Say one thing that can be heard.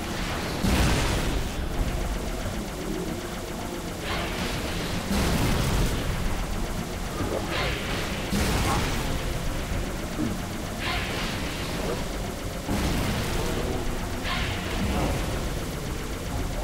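Energy weapons fire in repeated sharp bursts.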